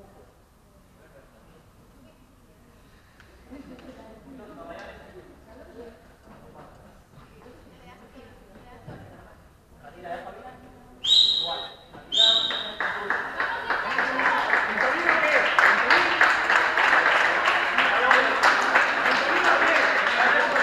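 Voices of players and spectators echo through a large hall.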